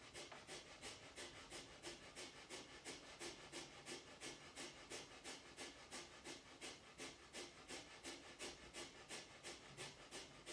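A woman breathes out sharply through her nose in quick, steady rhythmic bursts, close by.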